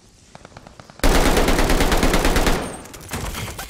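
A rifle fires rapid bursts of shots at close range.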